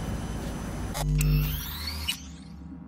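A short electronic whoosh rises.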